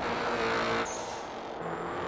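Metal scrapes against a barrier with a grinding noise.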